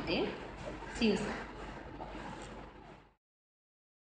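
A middle-aged woman laughs softly.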